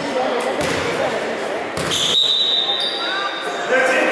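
A basketball bounces on a hard court floor.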